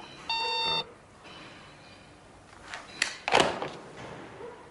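An elderly man talks calmly into a telephone, close by.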